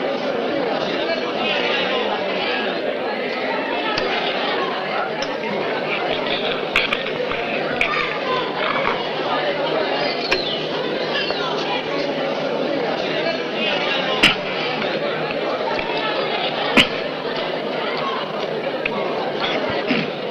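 A crowd of men and women murmurs and chatters outdoors.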